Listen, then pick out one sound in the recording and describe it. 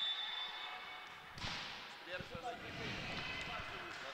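A volleyball bounces on a hard floor in a large echoing hall.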